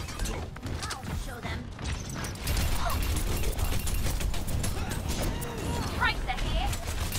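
Rapid bursts of video game gunfire crackle.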